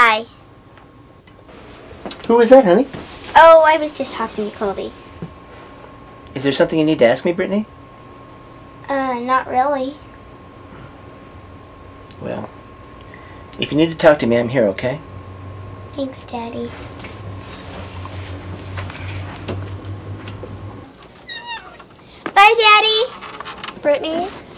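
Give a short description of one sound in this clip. A young girl speaks softly, close by.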